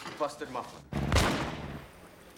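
A car exhaust backfires with a loud bang.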